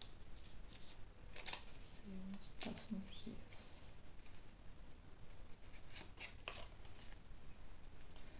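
Playing cards rustle and slap softly as hands shuffle them.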